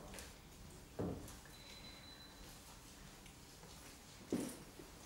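Paper pages rustle as a woman turns them.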